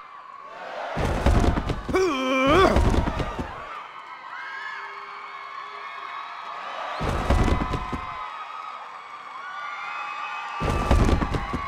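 Heavy punches thud dully against a body in bursts.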